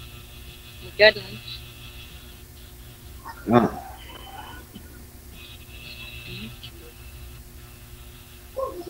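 A woman speaks in short bursts over an online call.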